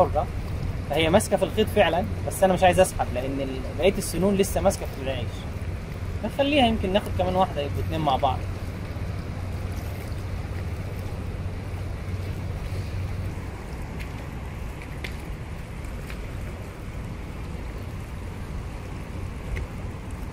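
Water laps and ripples gently below.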